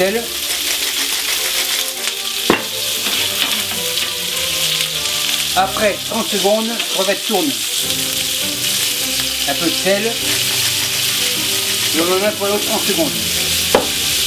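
Shrimp sizzle steadily in a hot pan.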